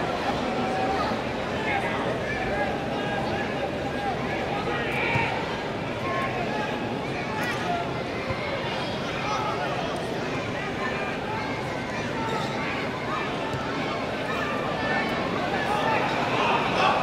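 Spectators shout and cheer now and then.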